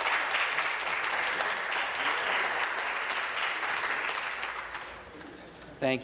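A crowd applauds in a large echoing hall.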